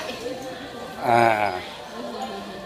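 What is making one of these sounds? A young girl lets out a short, loud sung cry.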